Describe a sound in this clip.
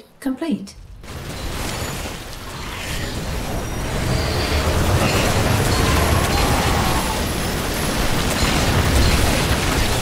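Rapid gunfire and blasts rumble in a noisy battle.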